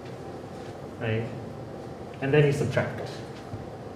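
A man speaks calmly, slightly muffled.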